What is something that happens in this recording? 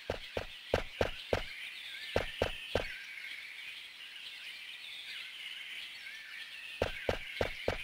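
Footsteps tread on a dry dirt path.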